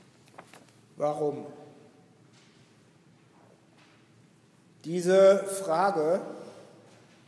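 An elderly man speaks slowly through a microphone in a reverberant hall.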